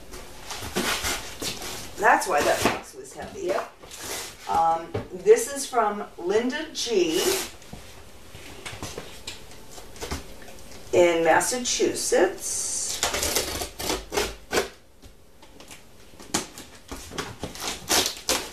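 Cardboard boxes scrape and thump as they are handled.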